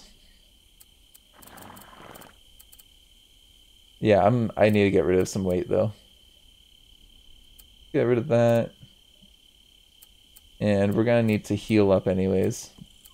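Soft interface clicks sound as menu items are selected.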